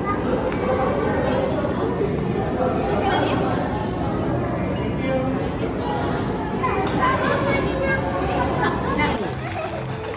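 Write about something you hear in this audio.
Voices of a crowd murmur in an echoing tunnel.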